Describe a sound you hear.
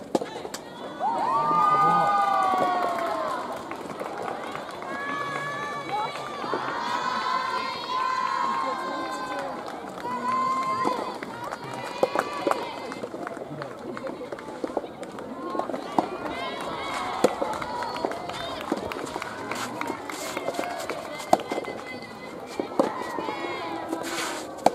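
Young women shout loudly in high voices outdoors.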